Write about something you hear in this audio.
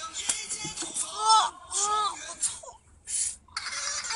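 A young boy cries out loudly.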